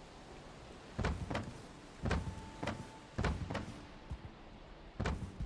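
Wooden chest lids thud open and shut.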